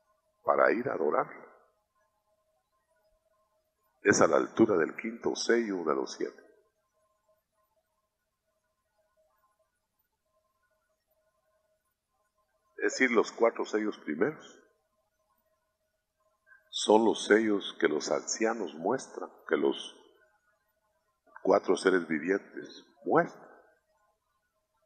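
A man preaches into a microphone, speaking in short bursts with long pauses.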